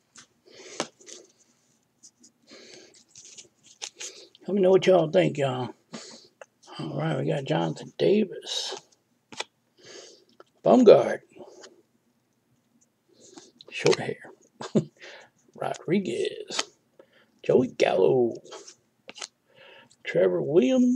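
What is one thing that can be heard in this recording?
Glossy trading cards slide against each other as they are flipped through by hand.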